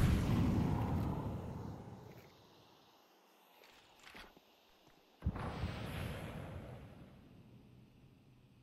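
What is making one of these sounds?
A smoke grenade bursts with a loud hiss that slowly fades.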